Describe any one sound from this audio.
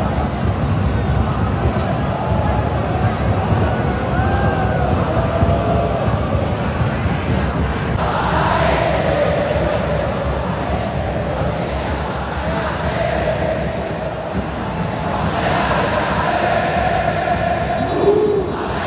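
A large stadium crowd chants and sings loudly together, echoing through the stands.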